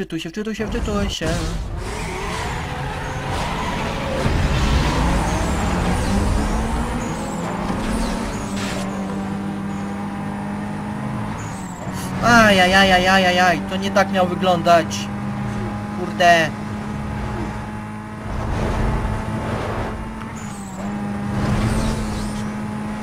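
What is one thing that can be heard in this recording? A car engine revs hard and climbs through its gears at high speed.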